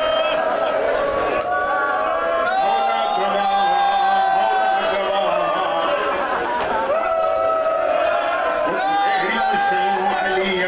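A man chants in a mournful, sustained voice through a loudspeaker in an echoing hall.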